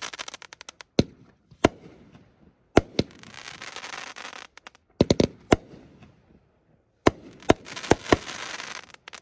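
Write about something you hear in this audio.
Fireworks burst with sharp bangs.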